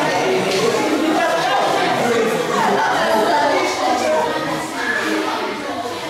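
Several children talk and chatter over one another.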